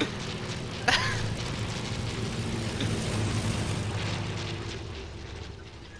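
A plane engine drones overhead.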